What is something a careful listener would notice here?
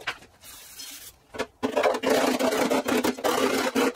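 A hammer taps on metal.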